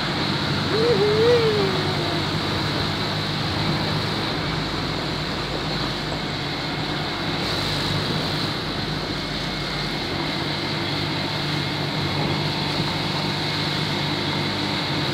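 A motorcycle engine runs on the road ahead.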